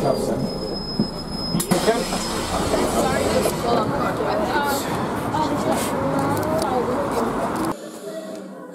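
Teenage girls chatter and talk excitedly outdoors.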